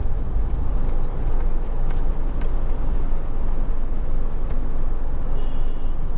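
Traffic hums and tyres roll on a road.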